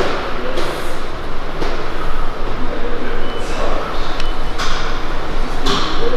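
A weight machine's plates clunk and creak with each slow press.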